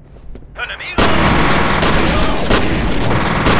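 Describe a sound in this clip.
A rifle fires in rapid, loud bursts in an echoing space.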